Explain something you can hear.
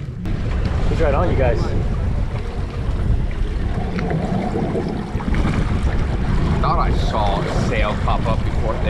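An outboard engine hums steadily.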